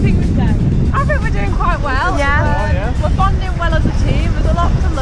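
Young people talk and laugh nearby outdoors.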